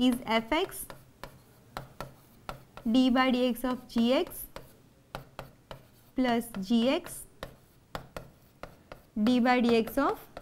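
A pen taps and scrapes on a board.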